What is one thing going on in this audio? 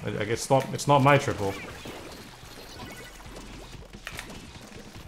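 Game ink guns splat and fire rapidly.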